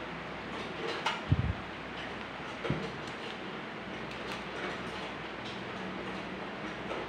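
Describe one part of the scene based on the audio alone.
Metal pliers click as they grip and bend.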